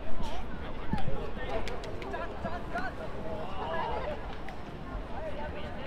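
Young players shout and call out across an open pitch.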